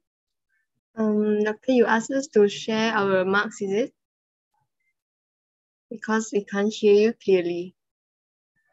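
A young woman talks calmly over an online call.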